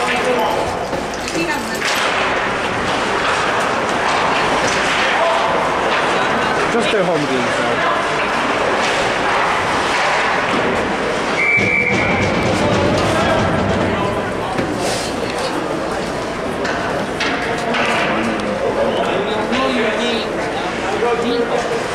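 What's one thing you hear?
Spectators chatter and call out in an echoing hall.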